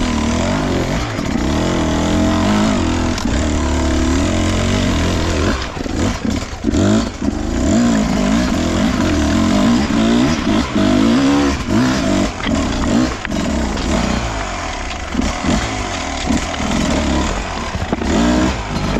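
Tyres crunch and clatter over loose rocks.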